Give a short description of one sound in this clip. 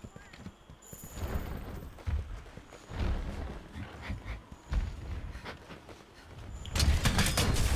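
Heavy thuds of a huge beast's steps rumble nearby.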